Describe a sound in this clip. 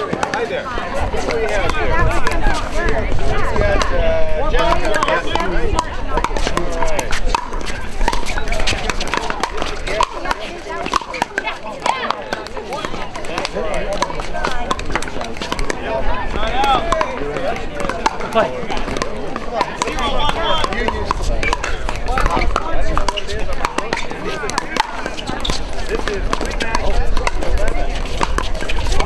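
Paddles pop sharply against a plastic ball in a quick rally.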